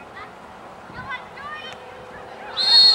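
A soccer ball is kicked with a dull thud.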